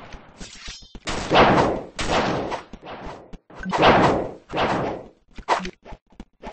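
Swords swing and clash in sharp bursts.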